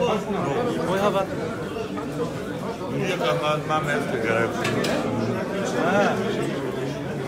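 A man shouts nearby.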